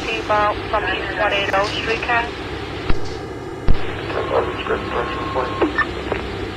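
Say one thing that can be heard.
A train's electric motor hums steadily while standing still.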